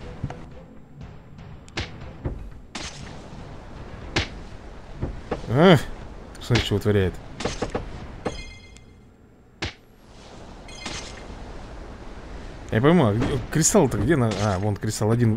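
Cartoon fighters clash with short thuds and swooshes in a game.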